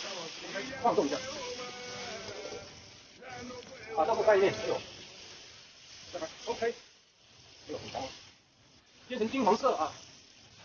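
Tofu sizzles in hot oil in a pan.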